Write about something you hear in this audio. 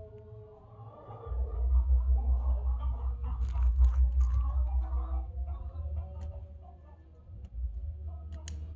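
Bubble wrap crinkles and crackles.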